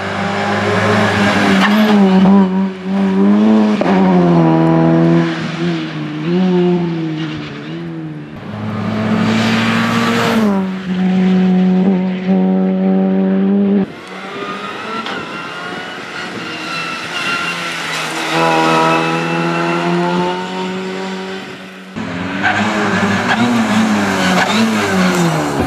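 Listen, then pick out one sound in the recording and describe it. A four-cylinder rally car revs hard through the gears.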